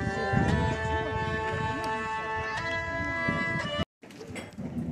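A hurdy-gurdy plays a droning tune.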